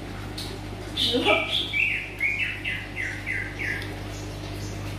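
A baby monkey squeaks in short high chirps.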